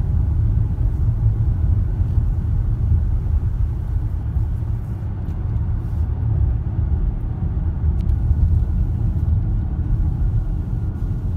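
Tyres roll on asphalt with a steady low rumble.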